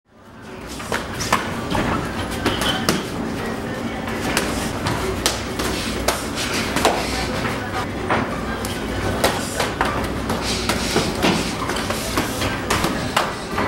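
Kicks thud against shins and bodies.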